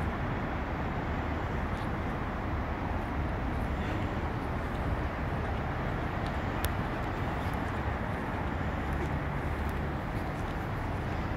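Wind rumbles steadily across the microphone outdoors.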